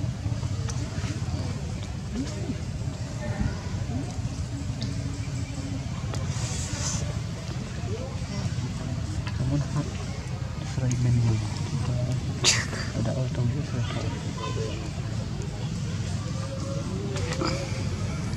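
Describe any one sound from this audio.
A baby monkey chews food close by.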